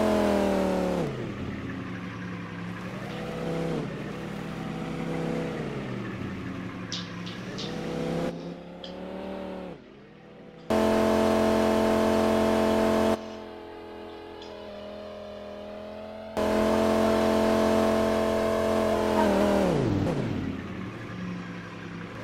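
A racing car engine revs up and down as the car slows and turns.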